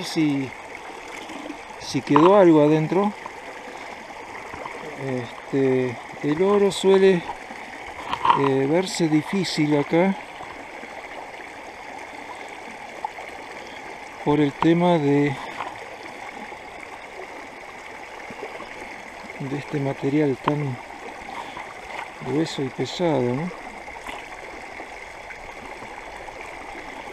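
Water sloshes and swirls in a plastic pan.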